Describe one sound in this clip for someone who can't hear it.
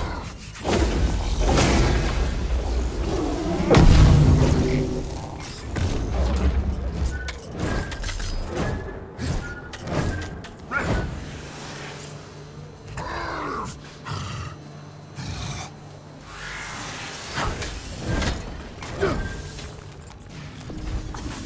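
Energy blasts crackle and boom in quick bursts.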